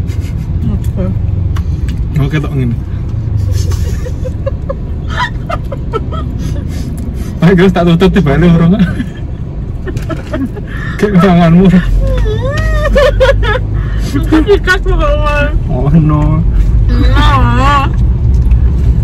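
A young man laughs close to the microphone.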